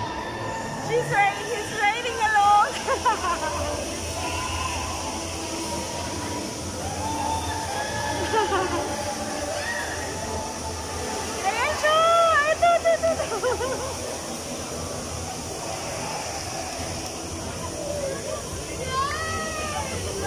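Young riders scream with excitement at a distance.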